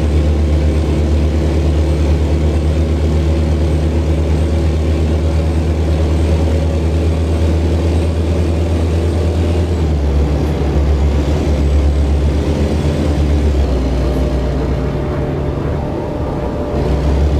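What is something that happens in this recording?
A truck's diesel engine drones steadily.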